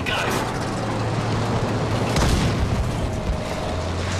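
A shell explodes ahead with a heavy bang.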